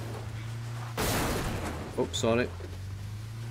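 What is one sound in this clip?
A car crashes into a wall with a loud bang.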